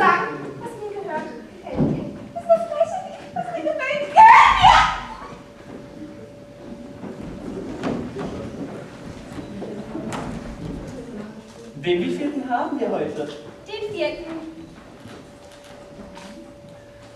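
A man speaks with animation, in a hall with some echo.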